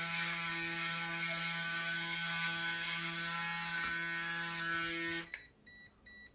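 An electric trimmer buzzes steadily close by.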